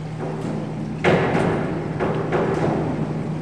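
A diving board thumps and rattles as a diver springs off it.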